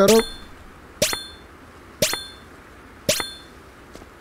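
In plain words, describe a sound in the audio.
Game cards flip over with short chiming sounds.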